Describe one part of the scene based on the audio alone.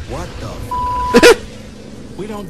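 A man speaks in surprise.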